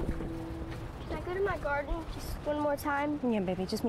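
A young girl asks a question softly nearby.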